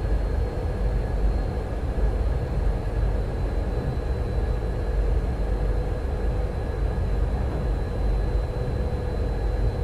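Train wheels rumble along the rails.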